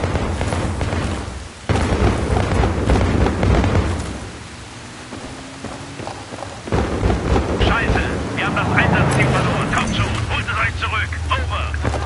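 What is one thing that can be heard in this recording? Flames roar and crackle on a burning vehicle.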